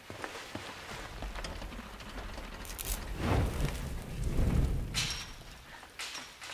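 A fiery explosion roars.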